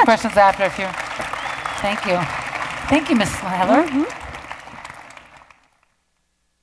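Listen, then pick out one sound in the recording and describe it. An audience applauds and cheers loudly in a hall, then fades away.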